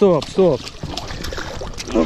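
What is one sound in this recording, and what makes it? A fish splashes in the water close by.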